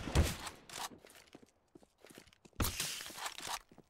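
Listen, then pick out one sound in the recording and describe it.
Footsteps thud on a concrete rooftop.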